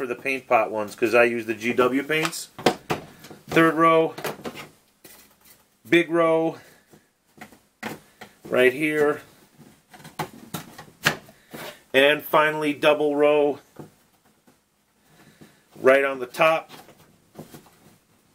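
Cardboard pieces click and tap as they are pressed into a tray.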